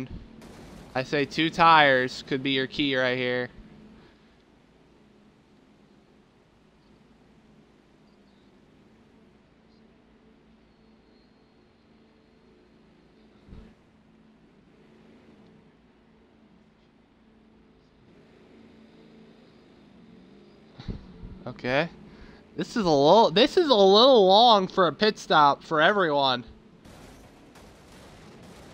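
Race car engines drone steadily.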